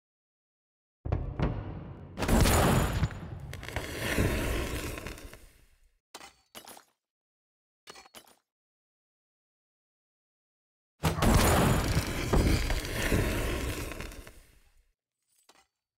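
A heavy explosion booms and rumbles away.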